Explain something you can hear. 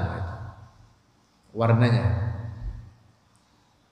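A young man speaks slowly and in a drawn-out way into a close microphone, with pauses.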